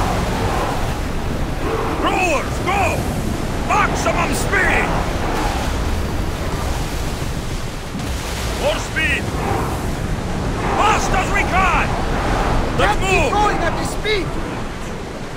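Waves surge and splash against a ship's hull.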